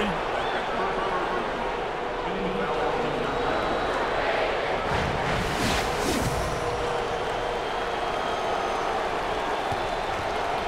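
A large crowd murmurs and cheers.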